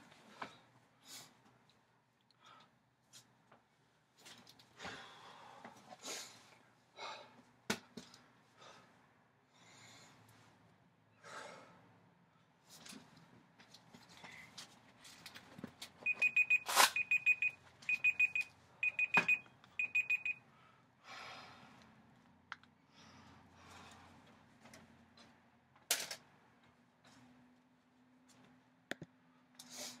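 A man breathes hard close by.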